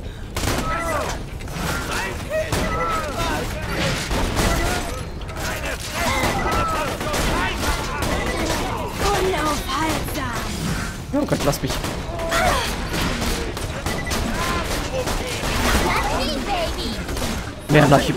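Guns fire in loud, sharp blasts.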